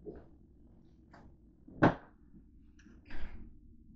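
A plastic bin lid clatters.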